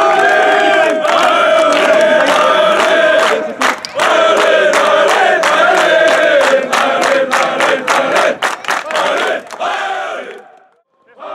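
A crowd of fans claps in rhythm.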